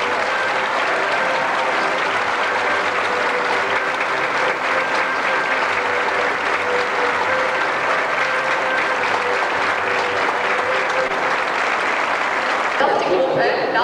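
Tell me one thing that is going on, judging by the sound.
A band plays lively folk music.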